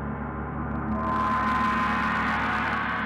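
A gong swells into a brighter, louder roar.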